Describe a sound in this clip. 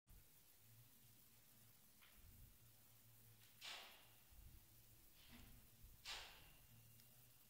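A man speaks calmly and quietly into a microphone.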